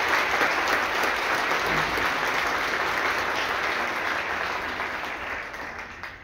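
A large concert band plays in an echoing hall, its sound slowly fading away.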